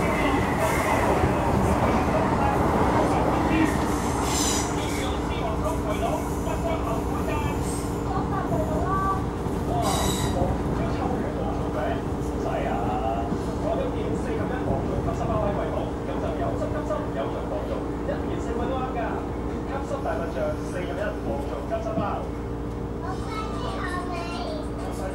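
A train rumbles and hums steadily as it rolls along the tracks.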